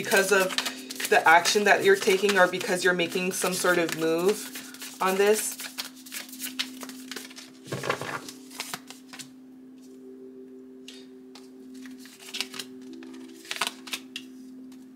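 Playing cards shuffle and flick softly in hands.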